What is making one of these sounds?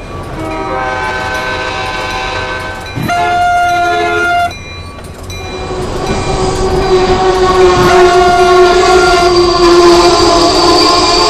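A train rolls past, its wheels rumbling on the tracks.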